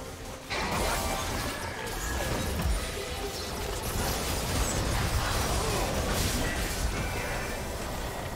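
Magic spells whoosh and crackle during a fast fantasy battle.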